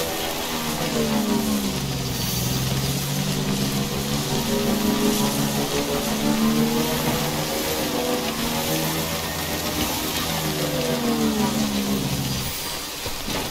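A motorbike engine hums and revs as it rides over rough grass.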